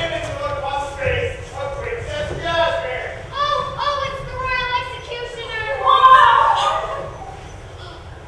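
A young man sings in a large echoing hall.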